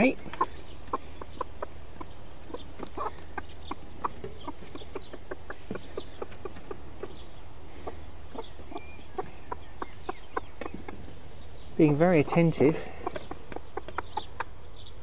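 Chicks peep in short, rapid chirps.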